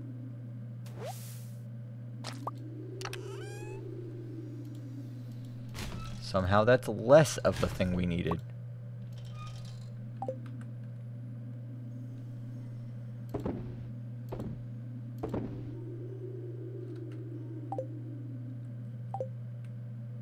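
Short game clicks and pops sound again and again.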